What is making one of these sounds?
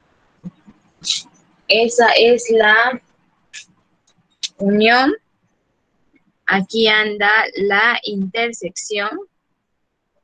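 A young woman speaks calmly, heard through an online call microphone.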